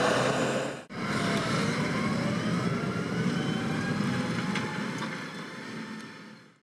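A disc harrow rattles and clanks over soil.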